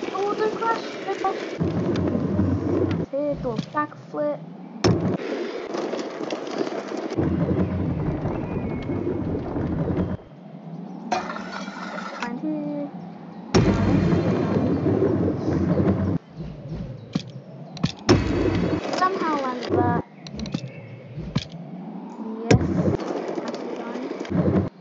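Scooter wheels roll and rumble over wooden ramps and pavement.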